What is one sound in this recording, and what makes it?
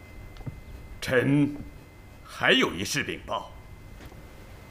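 A man reports in a firm voice.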